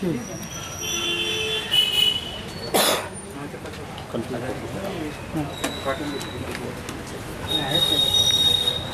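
Several men talk in low voices nearby.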